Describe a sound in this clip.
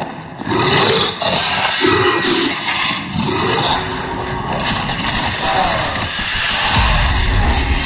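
Growling creatures snarl and groan nearby.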